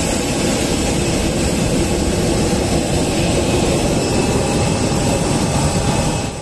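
A jet engine roars steadily nearby.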